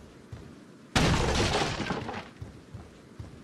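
A wooden door bangs open with a loud crash.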